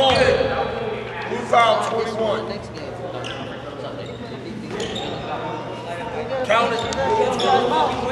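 Sneakers squeak sharply on a hard floor in a large echoing gym.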